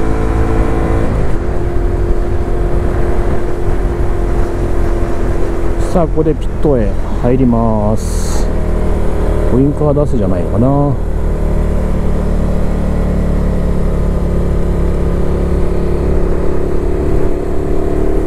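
A motorcycle engine drones loudly throughout.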